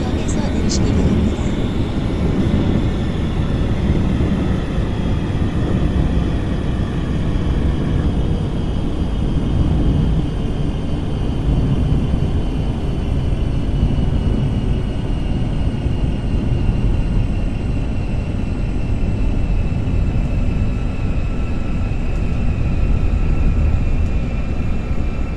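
A subway train rumbles steadily along the tracks, heard from inside the carriage.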